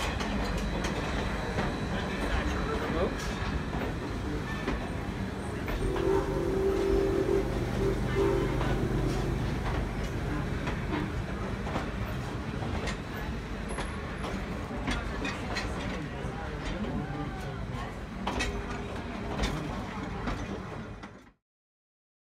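A train rumbles and clatters steadily along the tracks close by.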